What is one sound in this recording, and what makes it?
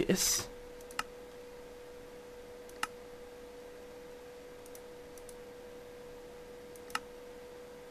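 A menu button clicks a few times.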